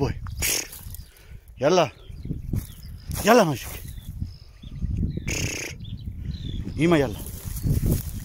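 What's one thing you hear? A dog pushes through dry grass and brush, rustling the stalks.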